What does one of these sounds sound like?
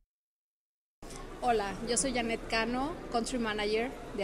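A woman asks questions into a close microphone.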